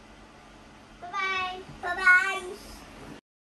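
A young child shouts playfully nearby.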